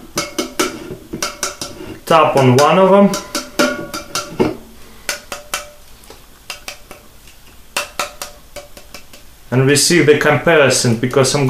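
Cans clink and tap on a table.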